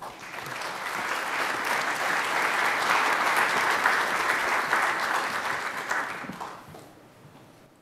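An audience applauds in a large hall, then the clapping fades away.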